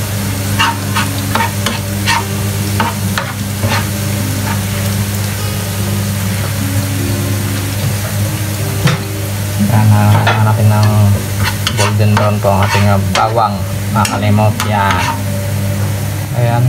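Chopped garlic sizzles in oil in a wok.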